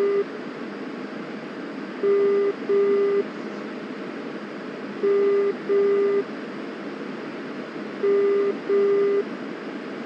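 A jet engine roars steadily with rushing air.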